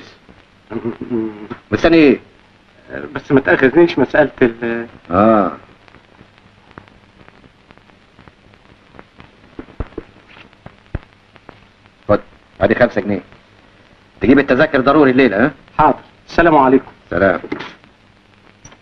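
An elderly man answers, close by.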